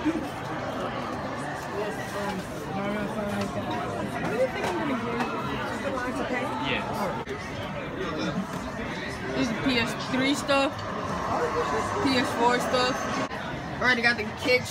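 A crowd of people chatters all around, with voices overlapping.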